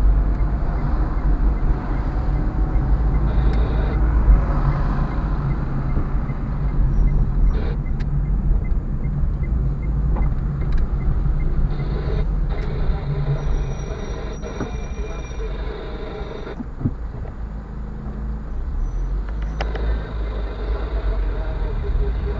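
Tyres rumble on the road.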